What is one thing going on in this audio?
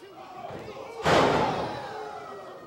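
A body slams hard onto a wrestling mat with a loud thud.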